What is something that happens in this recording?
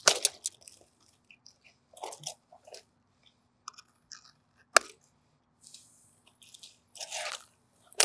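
Metal clamps clink and rattle.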